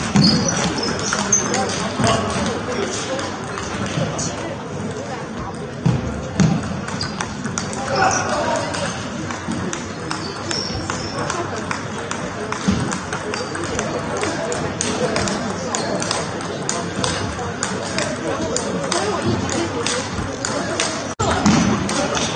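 Table tennis balls click sharply against paddles and tables in a quick rally, echoing in a large hall.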